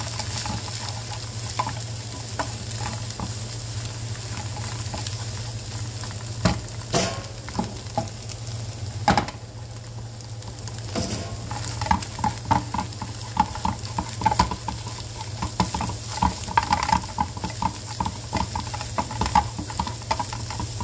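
Eggs sizzle in a hot pan.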